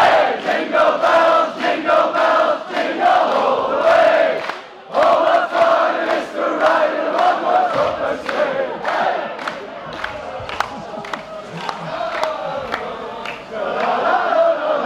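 A crowd chants loudly in a large echoing hall.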